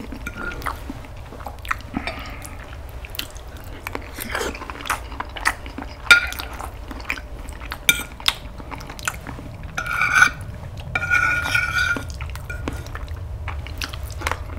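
A man chews and smacks his lips close by.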